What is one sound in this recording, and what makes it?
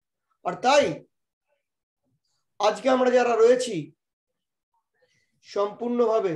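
A middle-aged man speaks with animation into a microphone, in short bursts with pauses.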